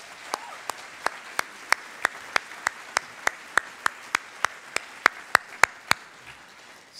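A man claps his hands steadily, close by.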